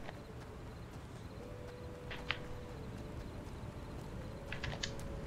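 Footsteps patter on the ground.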